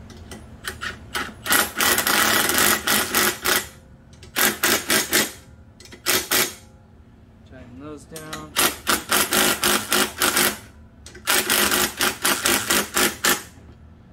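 An electric impact driver rattles and whirs in short bursts.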